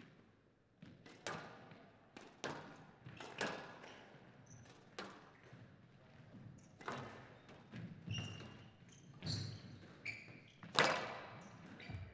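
A squash ball is struck hard and smacks against the walls with sharp echoing cracks.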